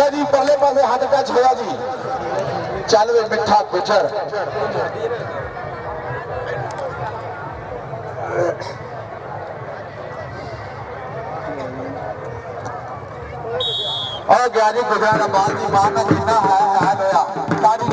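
A crowd of men shouts and chatters outdoors.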